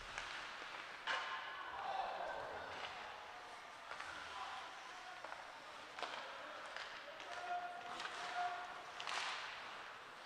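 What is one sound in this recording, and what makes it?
Spectators shout and cheer in a large echoing arena.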